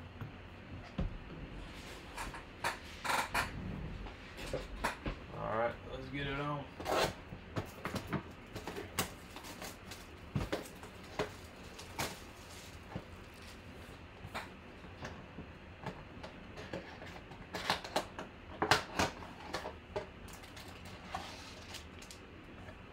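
Plastic wrapping crinkles and rustles as it is handled.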